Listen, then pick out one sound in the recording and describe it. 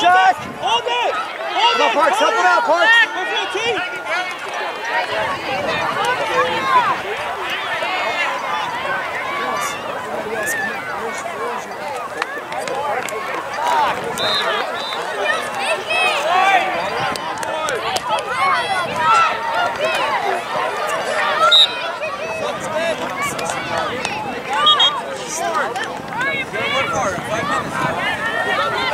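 Young players shout to one another across the field.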